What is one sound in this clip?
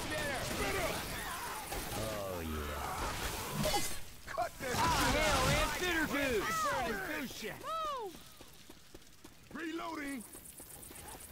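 Zombies shriek and snarl close by.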